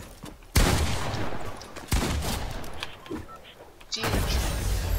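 Sharp game blasts and crashes ring out.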